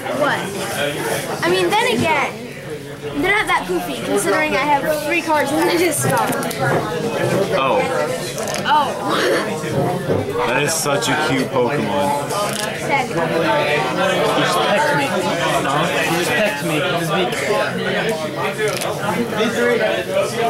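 Playing cards riffle and rustle as they are shuffled by hand.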